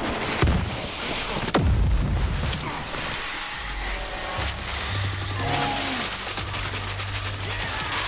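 A chainsaw roars and revs.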